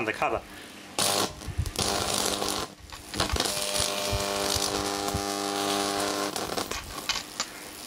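A fuse fizzes and hisses as it burns, throwing sparks.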